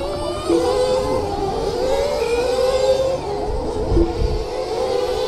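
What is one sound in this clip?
Small electric model cars whine as they speed around a track.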